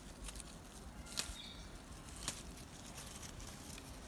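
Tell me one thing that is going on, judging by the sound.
Small tomatoes snap off their stems.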